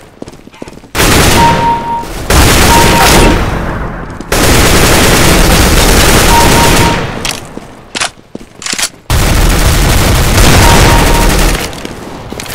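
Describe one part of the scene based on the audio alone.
An assault rifle fires in bursts.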